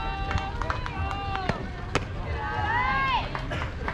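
A ball smacks into a catcher's glove.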